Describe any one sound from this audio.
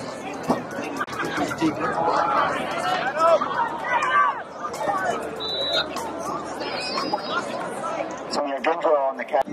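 A crowd cheers and shouts across a large outdoor field.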